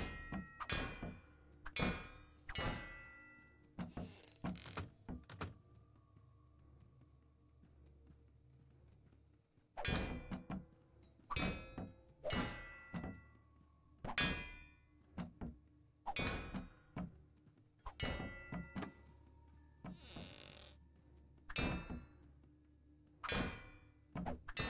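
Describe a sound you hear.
Small objects clank and clatter as they are knocked off shelves and hit the floor.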